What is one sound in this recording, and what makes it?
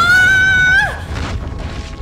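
A young woman shrieks in surprise close by.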